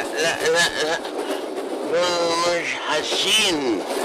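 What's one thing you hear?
A man speaks tensely at close range.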